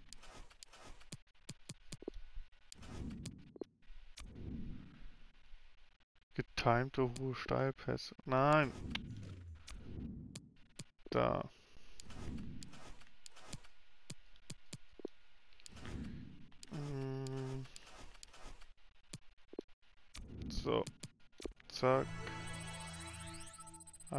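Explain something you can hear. Short menu clicks sound as selections change.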